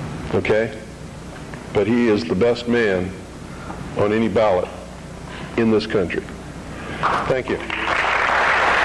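A middle-aged man speaks slowly into a microphone, with pauses.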